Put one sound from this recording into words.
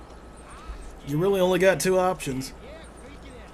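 A young man talks through a microphone, close by.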